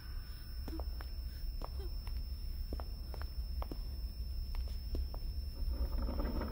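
Several people shuffle slowly across a wooden floor.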